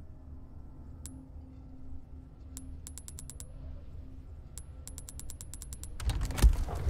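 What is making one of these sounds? Soft menu clicks tick in quick runs.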